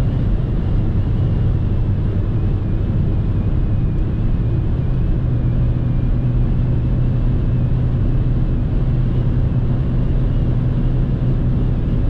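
A car engine hums steadily at speed, heard from inside the cabin.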